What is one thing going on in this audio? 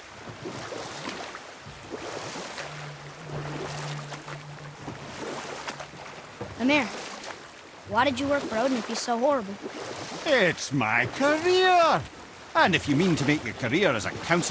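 Oars splash steadily through water as a small boat is rowed.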